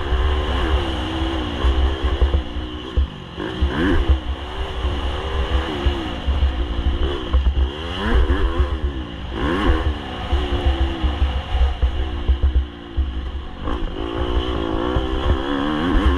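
Tyres crunch and rattle over a rough dirt trail.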